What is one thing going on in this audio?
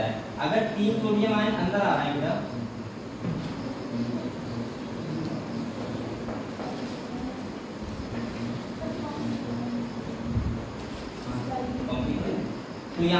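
A man speaks calmly, like a teacher explaining.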